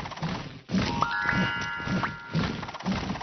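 A bright chime of rising notes rings out.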